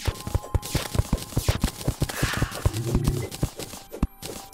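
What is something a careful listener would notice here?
Quick game digging clicks tap in a rapid rhythm.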